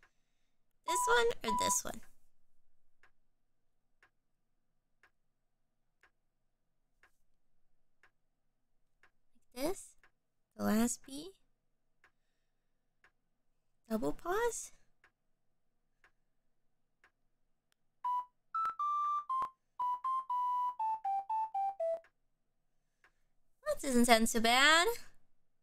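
A young woman speaks with animation close to a microphone.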